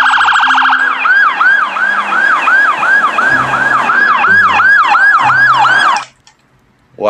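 A police siren wails in fast, repeated rising and falling whoops.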